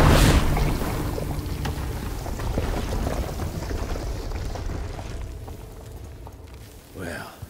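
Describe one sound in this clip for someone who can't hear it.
Debris patters and crackles as it falls.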